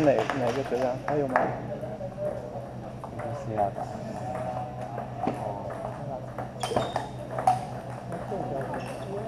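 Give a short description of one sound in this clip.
A ping-pong ball clicks against paddles and bounces on a table.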